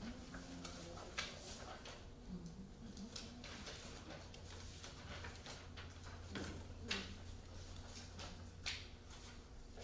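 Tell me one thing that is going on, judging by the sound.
Paper rustles in a man's hands.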